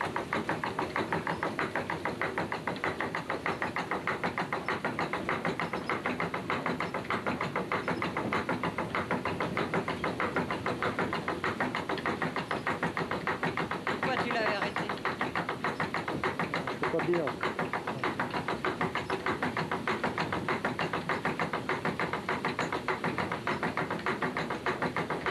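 A water mill's grain hopper and millstones clatter in a fast, even rhythm.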